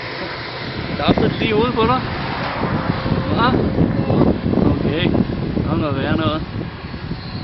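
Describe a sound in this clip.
A young child babbles and speaks in a high voice close by.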